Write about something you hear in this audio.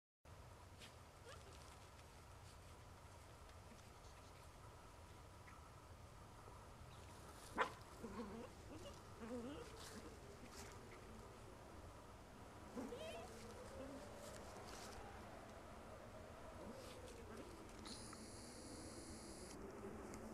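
Small dogs scratch and dig at loose dirt close by.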